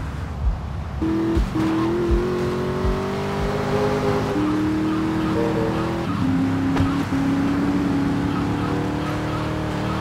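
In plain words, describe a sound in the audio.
A car engine hums steadily and shifts pitch as it changes gear.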